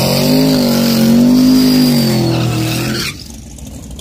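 Tyres squeal as a car spins its wheels.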